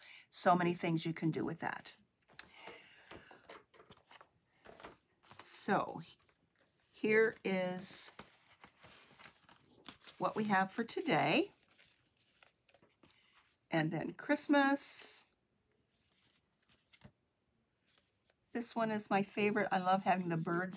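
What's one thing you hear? A middle-aged woman talks calmly and closely into a microphone, in bursts with pauses.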